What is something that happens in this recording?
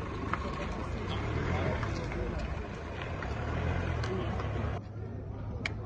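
An ambulance engine rumbles as it drives slowly past.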